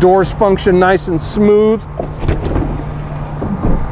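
A metal hatch latch clicks and the hatch swings open.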